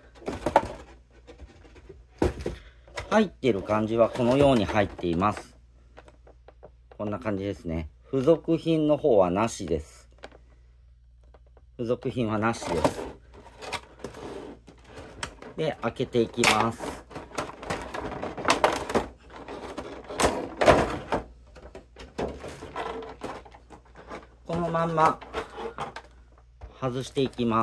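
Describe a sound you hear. Stiff plastic packaging crinkles and clatters as hands handle it.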